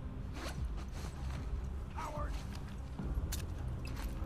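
Footsteps shuffle softly on pavement.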